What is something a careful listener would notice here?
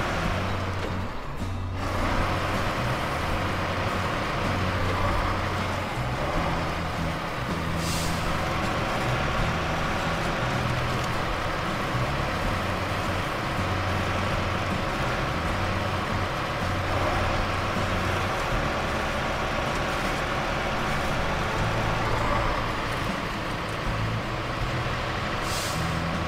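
Tyres crunch over mud and gravel.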